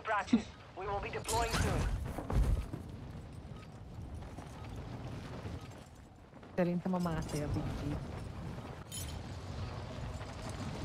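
Wind rushes loudly during a skydive.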